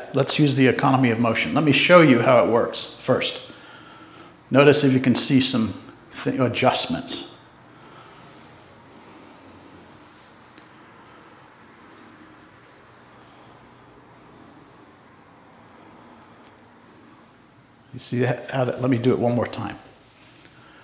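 A man speaks calmly close to a microphone.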